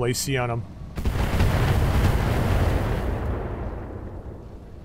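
An explosion booms and slowly rumbles away.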